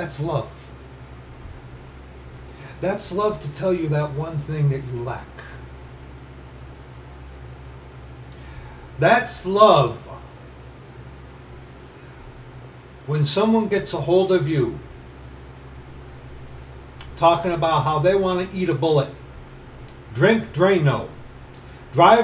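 A middle-aged man speaks close to a microphone in bursts, with pauses between them.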